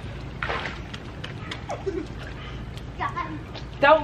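A boy splashes into pool water.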